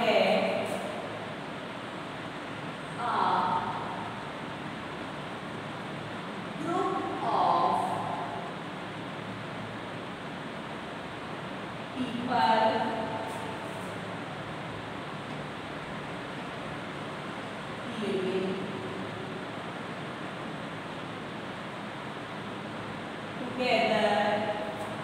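A woman speaks slowly in short phrases, pausing between them.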